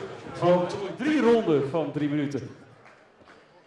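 A man announces loudly through a loudspeaker in a large echoing hall.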